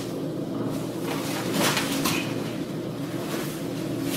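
Bodies thud onto padded mats.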